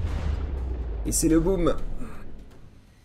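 Explosions boom and rumble with a deep roar.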